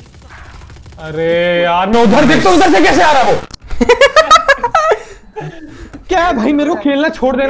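A young man laughs and shouts excitedly into a microphone.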